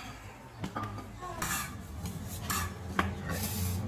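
A stone tile knocks against another tile.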